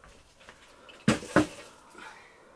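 A metal basin of dry brushwood is set down on a floor.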